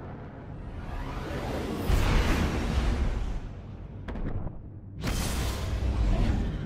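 A loud rushing whoosh swells as a spaceship leaps away.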